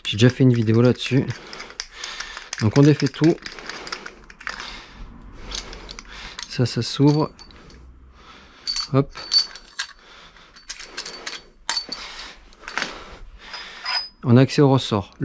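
Metal parts click and clatter as they are fitted together by hand.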